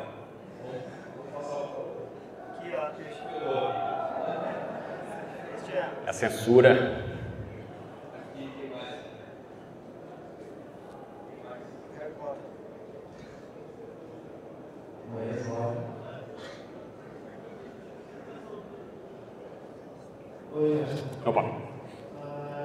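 A man speaks casually into a microphone, heard over a loudspeaker in a large room.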